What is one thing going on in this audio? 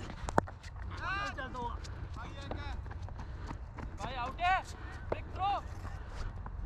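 Men shout across an open field in the distance.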